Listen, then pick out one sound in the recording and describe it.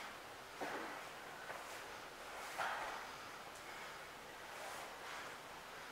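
Bodies scuffle and slide on a padded mat.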